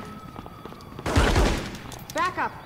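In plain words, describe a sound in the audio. A single gunshot rings out.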